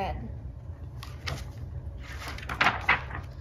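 Paper pages rustle as a book's pages are turned.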